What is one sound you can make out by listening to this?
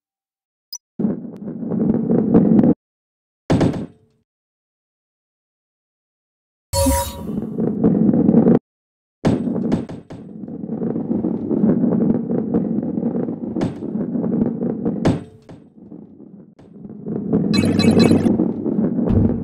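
A ball rolls and rumbles along a wooden track.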